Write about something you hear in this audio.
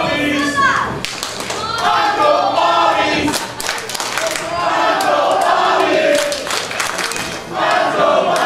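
A crowd cheers and claps.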